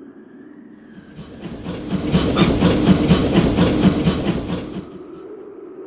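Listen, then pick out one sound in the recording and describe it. A freight train rumbles and rattles past.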